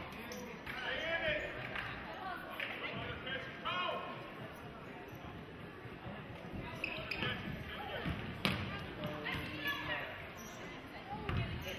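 A crowd of spectators cheers and chatters in a large echoing gym.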